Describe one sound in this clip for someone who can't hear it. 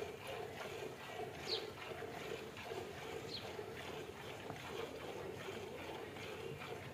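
Milk squirts rhythmically into a metal pail as a cow is milked by hand.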